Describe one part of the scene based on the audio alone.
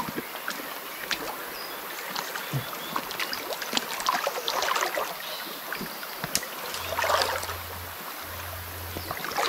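Water splashes and sloshes as people wade and move through a shallow stream.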